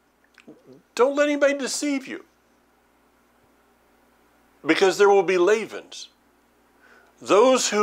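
An older man speaks calmly and closely into a microphone, in short bursts with pauses.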